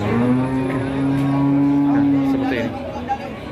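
A cow moos with a long, low call.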